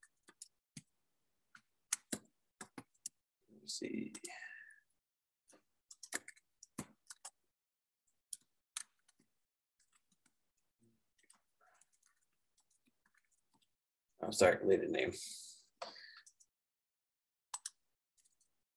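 Keys clatter on a computer keyboard in quick bursts.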